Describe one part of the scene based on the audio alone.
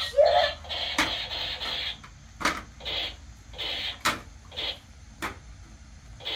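A toy gun's trigger clicks sharply.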